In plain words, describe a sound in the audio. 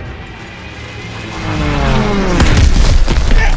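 Aircraft engines roar overhead with a falling whine as planes dive.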